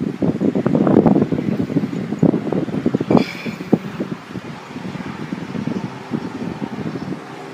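Wind blows and buffets outdoors.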